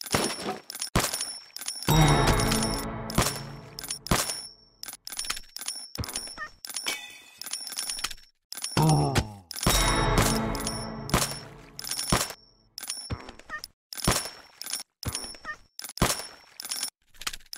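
Game coins clink and chime rapidly as gold is collected.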